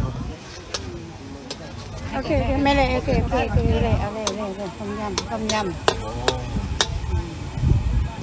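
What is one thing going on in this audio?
A metal ladle scrapes against a wok.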